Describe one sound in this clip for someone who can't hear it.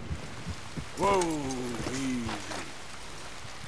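A horse whinnies loudly nearby.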